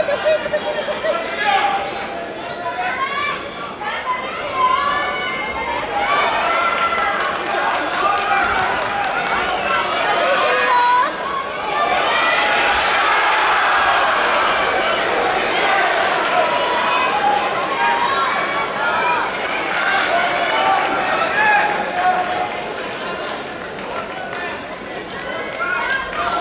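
A large crowd shouts and cheers in an echoing arena.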